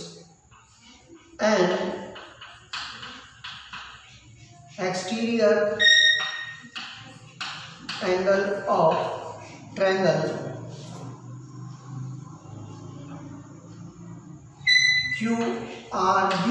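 Chalk scratches and taps on a board.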